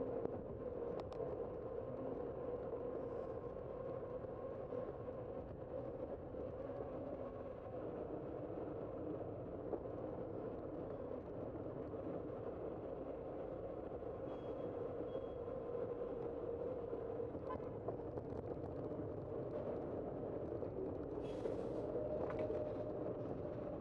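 Bicycle tyres hum steadily on pavement.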